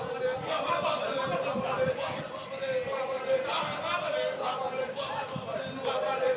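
A crowd of men talk and call out outdoors at a distance.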